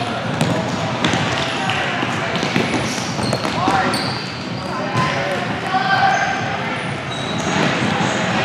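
A crowd of spectators chatters and shouts in an echoing hall.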